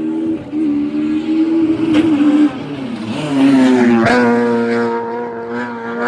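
A racing car roars past close by at high speed.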